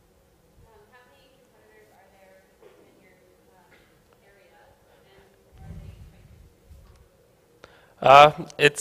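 A man speaks faintly from a distance in a large hall.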